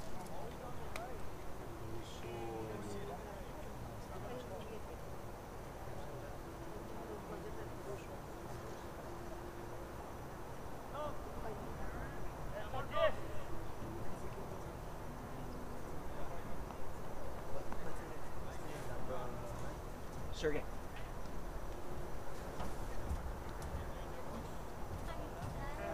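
Players shout and call out across an open outdoor field.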